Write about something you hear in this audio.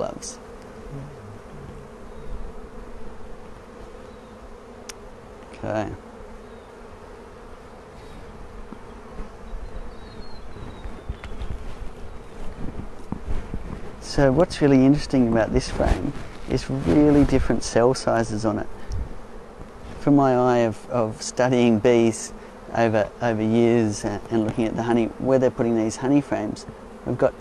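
Many bees hum and buzz steadily close by.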